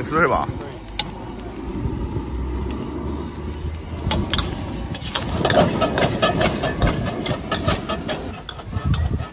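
A gas flame roars under a wok.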